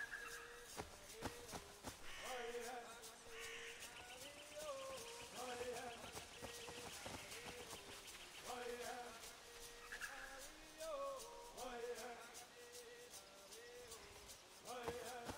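Footsteps rustle through leaves and undergrowth.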